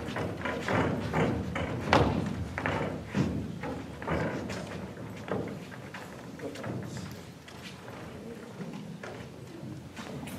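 Young actors speak on a stage, heard from a distance.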